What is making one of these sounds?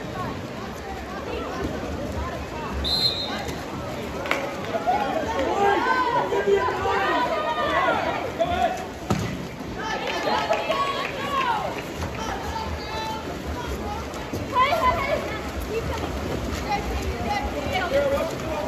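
Water polo players splash in a pool.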